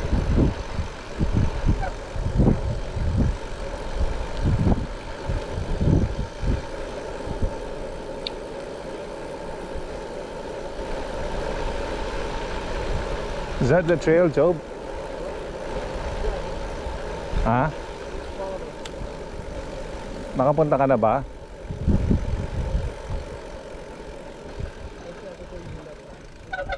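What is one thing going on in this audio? Bicycle tyres hum steadily on the pavement.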